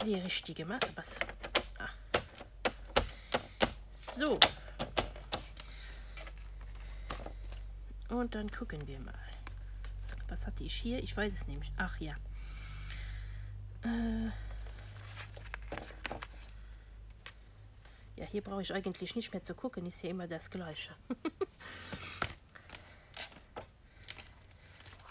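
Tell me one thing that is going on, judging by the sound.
Sheets of paper rustle and slide as they are handled.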